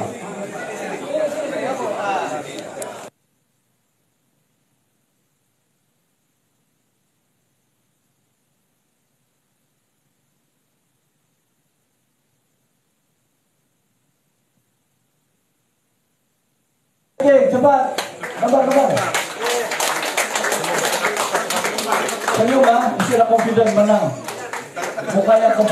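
A crowd of men and women chatters and cheers nearby.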